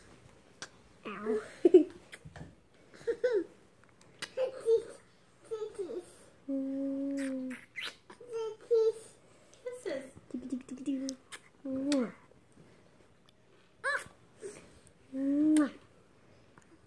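A baby coos and babbles up close.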